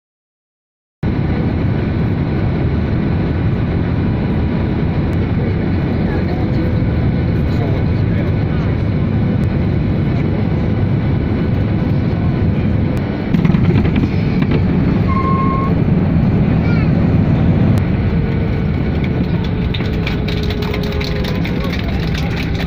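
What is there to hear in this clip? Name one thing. A jet engine roars steadily inside an airliner cabin.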